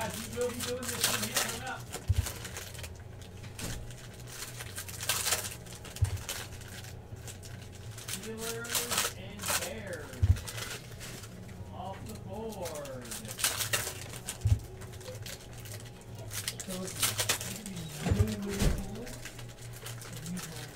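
A foil trading card pack crinkles and tears as it is ripped open.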